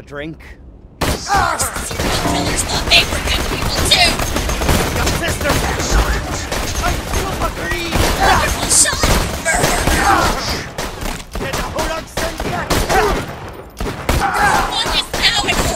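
A sniper rifle fires single shots.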